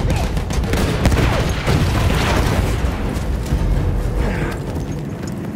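A large explosion booms and rumbles nearby.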